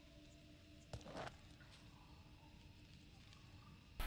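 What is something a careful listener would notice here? A stone scrapes against the ground as a hand picks it up.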